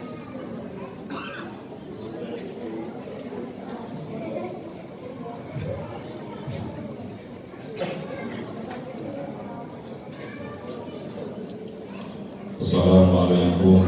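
A man speaks into a microphone over a loudspeaker in an echoing hall.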